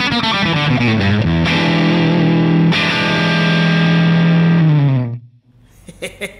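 An electric guitar plays loud, ringing chords through an amplifier and fades out.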